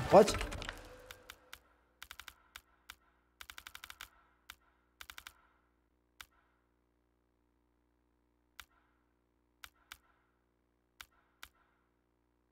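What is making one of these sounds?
Menu selections click softly and rapidly.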